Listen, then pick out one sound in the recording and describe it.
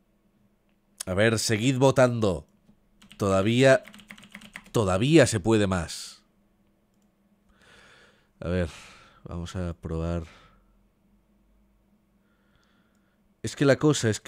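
A young man speaks casually and close into a microphone, with pauses.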